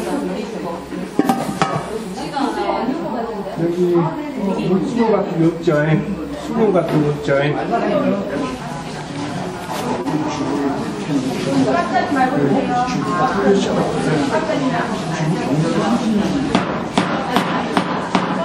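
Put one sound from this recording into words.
A metal pot lid clanks against a pot.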